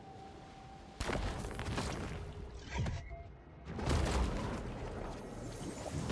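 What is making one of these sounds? A rushing underwater whoosh sweeps past.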